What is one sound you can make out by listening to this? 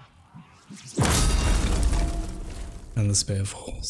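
A heavy gate rumbles open with a deep boom.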